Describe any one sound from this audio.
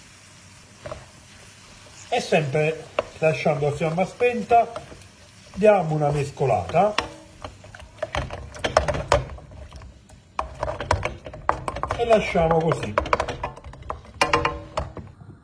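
A spoon scrapes and stirs food in a metal pan.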